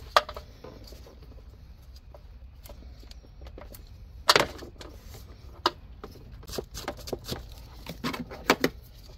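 Small plastic parts click and knock close by.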